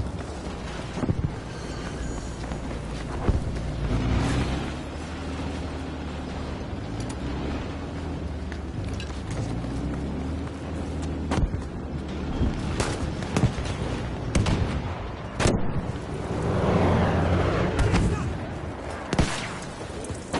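Gunshots crack repeatedly, some near and some far off.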